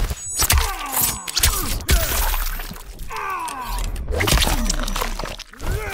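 Blood splatters wetly.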